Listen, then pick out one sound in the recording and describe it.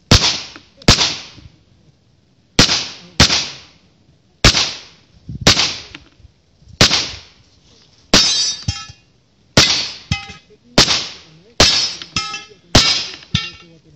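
Gunshots crack loudly outdoors, one after another.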